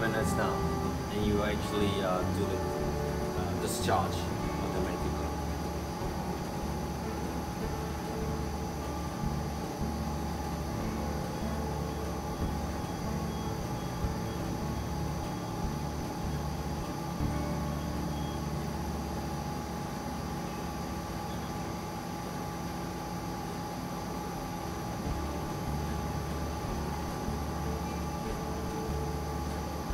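A coffee roasting machine hums and whirs steadily.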